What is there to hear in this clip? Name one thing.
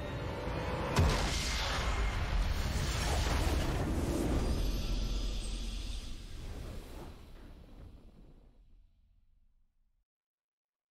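A triumphant orchestral fanfare swells and then fades away.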